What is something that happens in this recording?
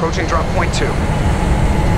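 A spaceship's engines rumble low and steady.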